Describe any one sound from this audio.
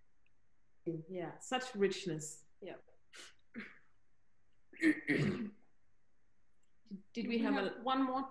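A woman speaks calmly, heard through an online call.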